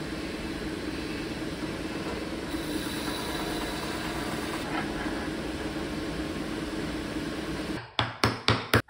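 A sanding machine whirs steadily as wood is pressed against it.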